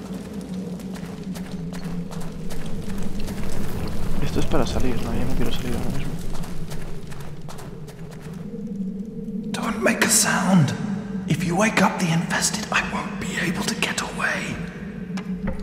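Armoured footsteps clank on stone in a hollow, echoing passage.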